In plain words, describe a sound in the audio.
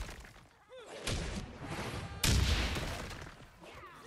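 A game explosion booms.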